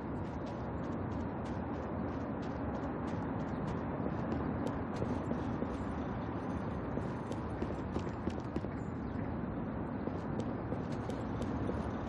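Footsteps run quickly over gravel and stone.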